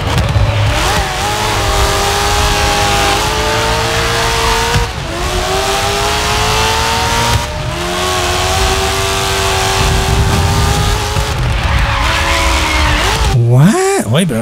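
A racing car engine roars and climbs in pitch, dropping briefly with each gear change.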